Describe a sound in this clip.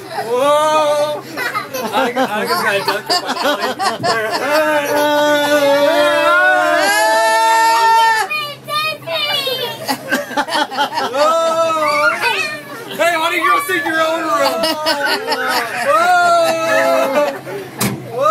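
Young girls shout and sing excitedly close by.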